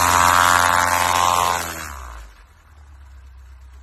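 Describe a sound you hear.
Skis hiss across snow.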